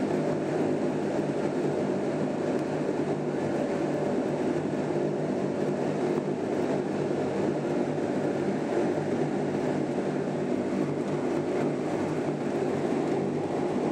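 A propeller aircraft engine drones loudly and steadily, heard from inside the cabin.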